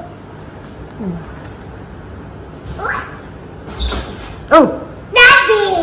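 A toddler babbles and squeals close by.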